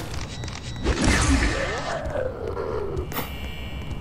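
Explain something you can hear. A ray gun fires with a loud electric zap.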